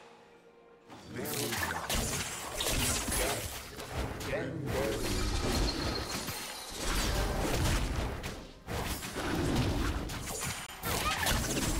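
Magic blasts whoosh and crackle in a busy game fight.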